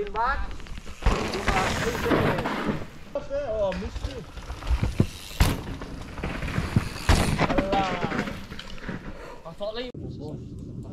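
Bike tyres crunch and rattle over a dirt trail.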